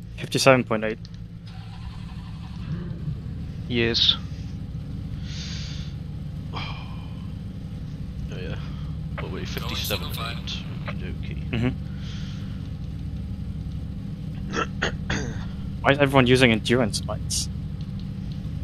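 Race car engines idle with a low, steady rumble.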